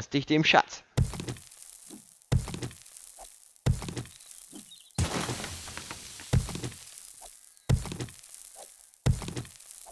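A stone axe strikes rock in regular heavy thuds.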